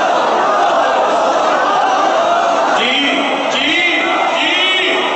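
A man sings a lament loudly through a microphone.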